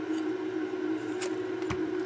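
Test lead wires rustle and tap as they are moved.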